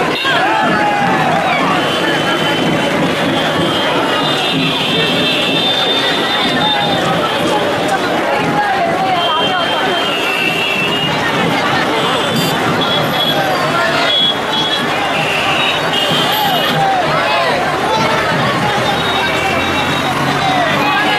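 A large crowd of men and women chatters and chants loudly outdoors.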